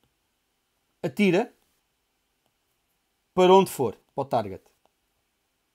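A man speaks calmly and close to a microphone, in short phrases.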